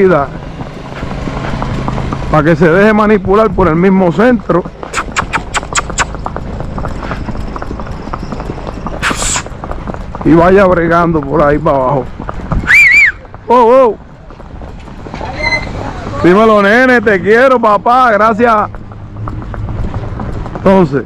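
A horse's hooves clop steadily on pavement.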